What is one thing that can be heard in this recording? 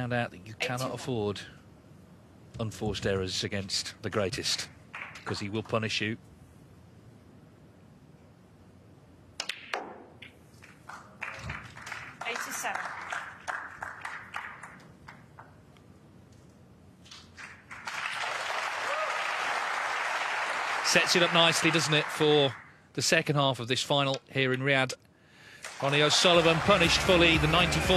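Snooker balls click together.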